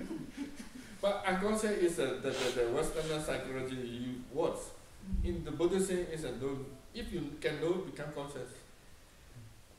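A middle-aged man speaks calmly and with warmth close by.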